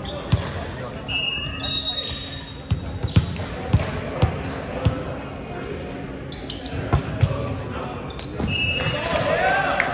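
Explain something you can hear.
Sneakers squeak on the hardwood floor.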